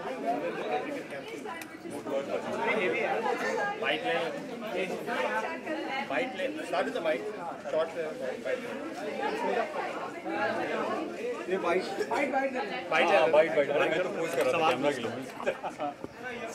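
Several people talk at once nearby in a lively crowd.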